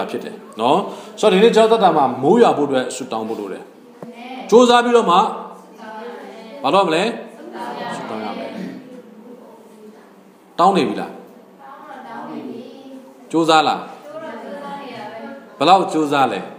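A young man speaks steadily into a microphone in an echoing room, pausing between phrases.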